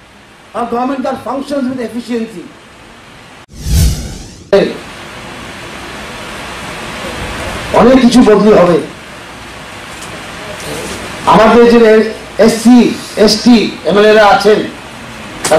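An elderly man speaks calmly into a microphone over loudspeakers.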